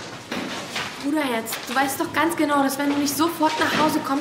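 A young woman speaks excitedly.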